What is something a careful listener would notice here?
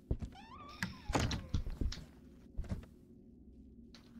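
A wooden door creaks as it swings open.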